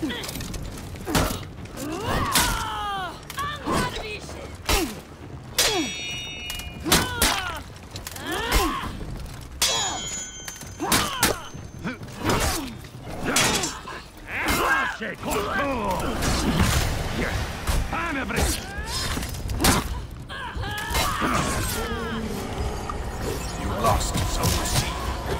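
Swords clash and strike again and again in a fierce fight.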